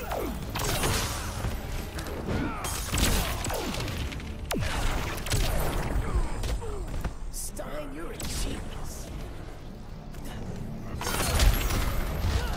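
Punches and kicks thud and crack in a fast fight.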